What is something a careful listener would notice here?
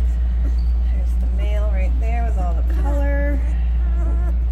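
A newborn puppy squeaks and whimpers.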